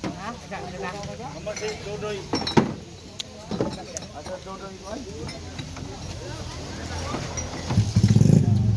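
Men talk nearby in a casual way.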